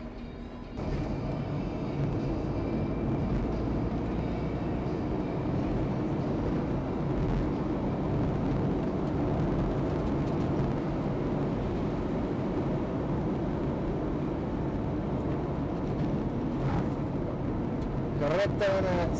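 A rally car's engine drones under load, heard from inside the car.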